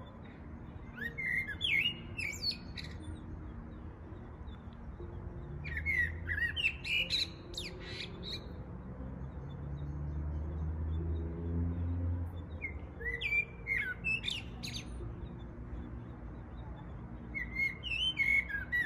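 Birds chirp and call outdoors.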